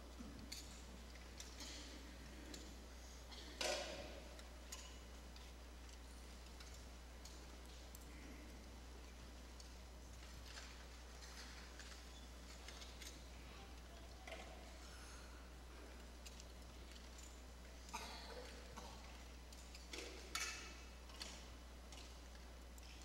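Offering plates clink and rustle as they are passed along the rows.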